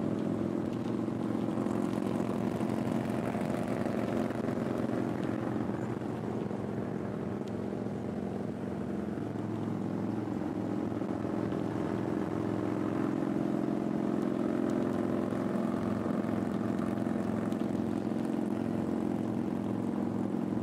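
Wind rushes past while riding on the road.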